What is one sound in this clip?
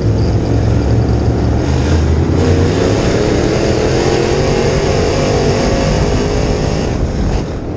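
A race car engine roars loudly up close, its pitch rising and falling with the throttle.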